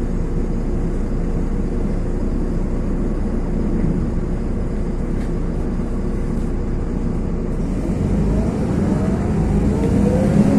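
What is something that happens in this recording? A car engine idles close by with a low, steady hum.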